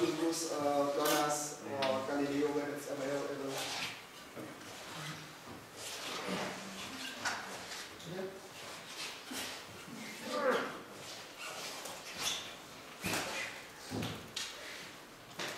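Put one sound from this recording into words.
A young man speaks into a microphone, heard through a loudspeaker in an echoing room.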